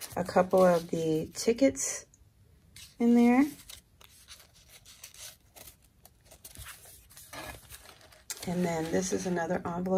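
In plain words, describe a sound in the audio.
Paper rustles and crinkles softly as it is handled.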